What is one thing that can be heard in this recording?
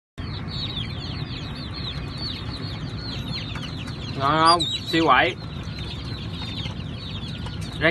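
An otter chirps in quick, high squeaks, with a couple of louder wavering squeals.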